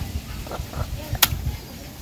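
Water runs and splashes over meat in a metal bowl.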